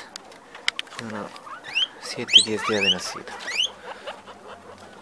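Guinea pigs squeal with high, rising whistles.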